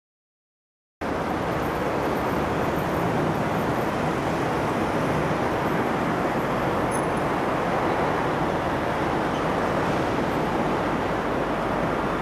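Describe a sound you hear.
Night traffic rumbles steadily in the distance.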